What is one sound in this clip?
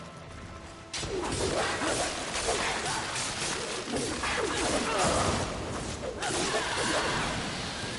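A monster screeches and growls.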